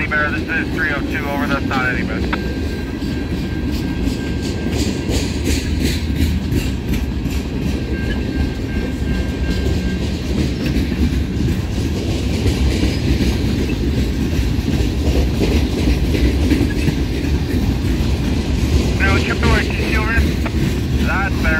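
A freight train rumbles past close by, its wheels clattering on the rails.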